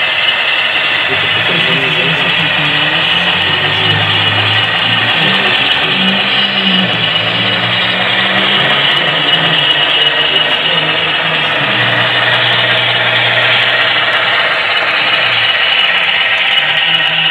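A model train locomotive hums and rumbles steadily along the track.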